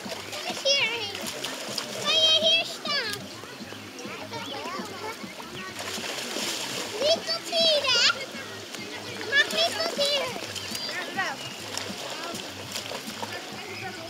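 Water splashes as children wade and play.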